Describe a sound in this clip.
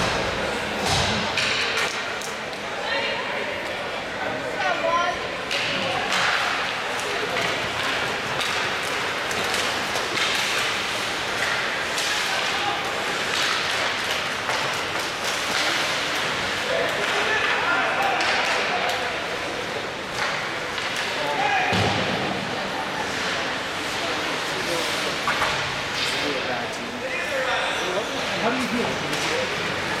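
A crowd of spectators chatters and shouts nearby.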